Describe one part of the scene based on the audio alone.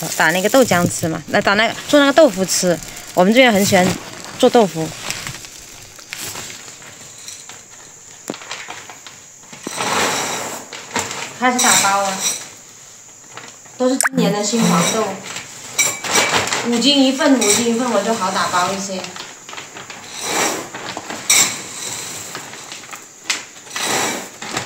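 Dry soybeans rustle and rattle as a hand scoops through them.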